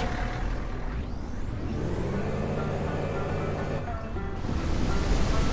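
A car engine starts up.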